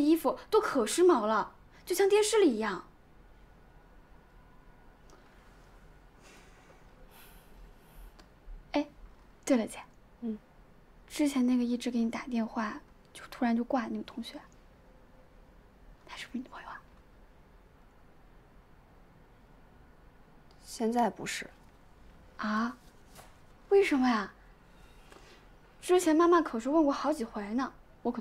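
A young woman talks quietly and casually nearby.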